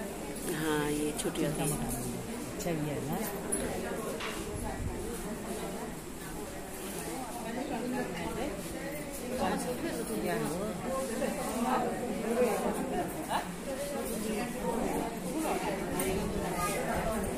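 A crowd of women chatters all around, close by.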